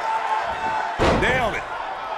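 A body slams hard onto a wrestling mat with a loud thud.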